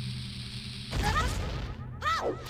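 A bomb explodes with a loud boom.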